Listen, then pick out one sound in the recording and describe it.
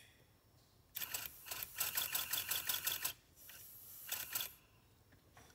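A chain tool's handle ratchets with rapid metallic clicks.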